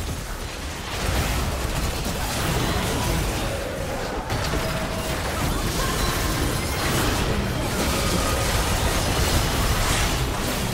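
Magic blasts and impacts crackle and burst in a fast battle.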